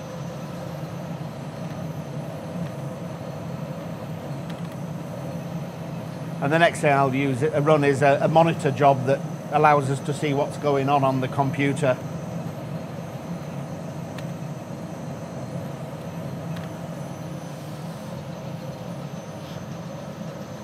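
A computer hums steadily.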